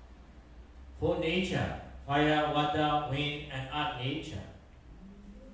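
A man chants in a melodic voice through a microphone in a reverberant room.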